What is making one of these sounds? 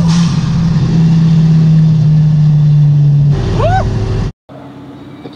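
A car engine roars at high, steady revs, heard from inside the car.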